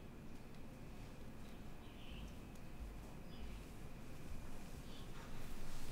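Footsteps thud softly across the floor.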